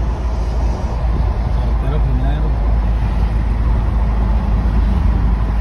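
A car engine hums steadily and tyres roll on the road from inside a moving car.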